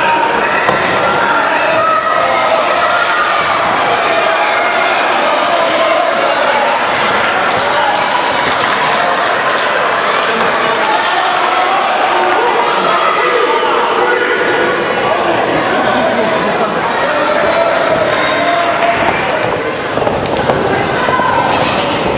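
A crowd of people chatters and shouts in an echoing hall.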